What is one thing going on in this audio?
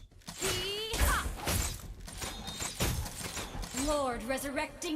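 Blows land with sharp thuds.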